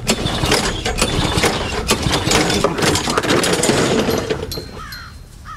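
A lawn mower engine roars nearby, then cuts out.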